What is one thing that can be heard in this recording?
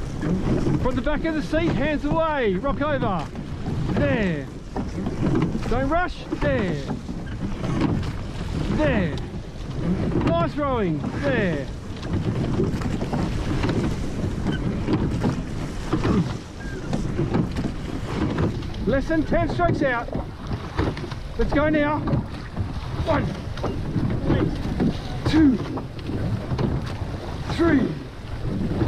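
A woman shouts rowing calls loudly.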